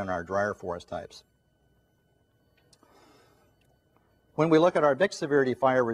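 A middle-aged man speaks calmly into a microphone, pausing briefly.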